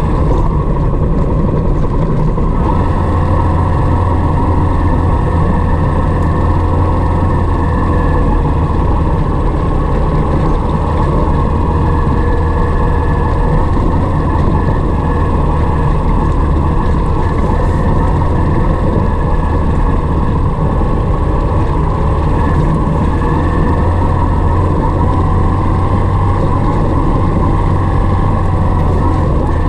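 Tyres crunch and rumble over a rough gravel track.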